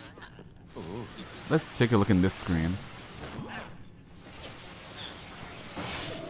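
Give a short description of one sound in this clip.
A television crackles with static and flares up.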